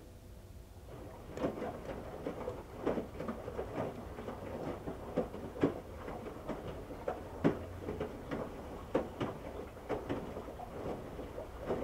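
Water and wet laundry slosh and splash inside a washing machine drum.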